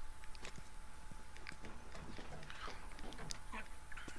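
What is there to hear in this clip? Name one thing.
Boots clank on metal ladder rungs as a man climbs.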